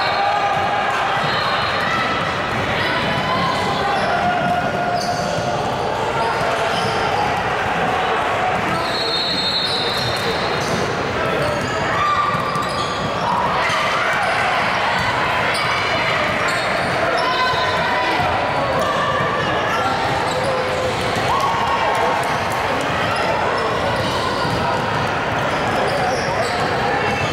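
Young girls call out to each other across the court.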